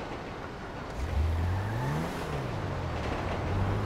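A car engine starts and revs up and down.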